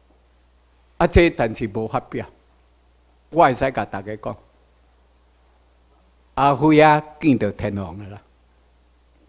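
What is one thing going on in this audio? A middle-aged man speaks into a microphone over loudspeakers in a large room, pausing between phrases.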